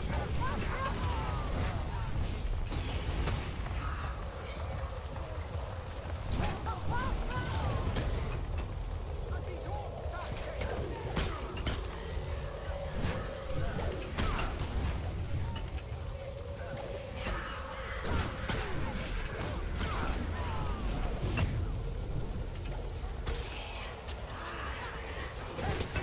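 Flames roar and crackle throughout.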